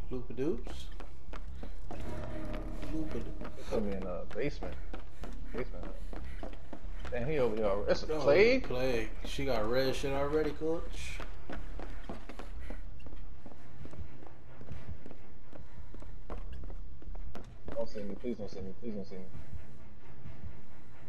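Footsteps thud quickly across wooden floors.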